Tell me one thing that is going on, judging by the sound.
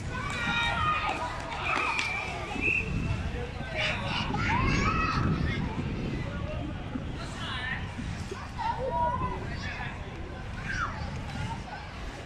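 Young children shout and call out across an open field outdoors.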